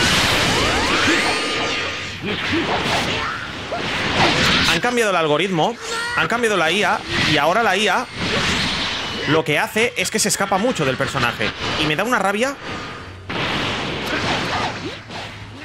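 Energy blasts whoosh and explode in a game.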